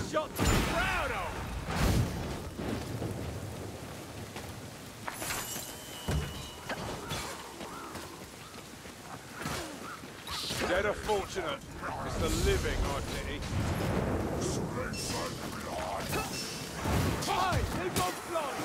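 A sword swooshes and slashes through the air.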